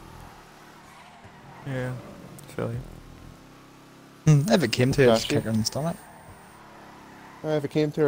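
A race car engine roars at speed.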